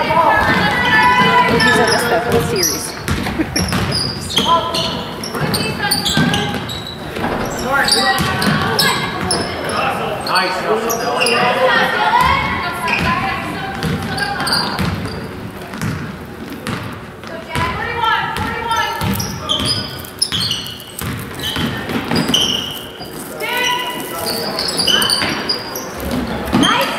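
Sneakers squeak sharply on a hard floor.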